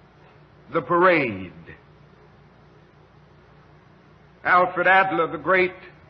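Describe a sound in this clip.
A man speaks slowly and forcefully into a microphone, with long pauses.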